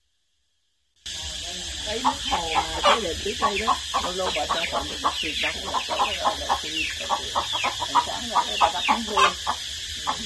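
Chickens cluck and squawk close by.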